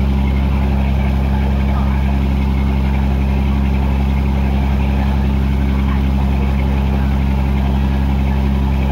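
Water splashes and washes against a moving boat's hull.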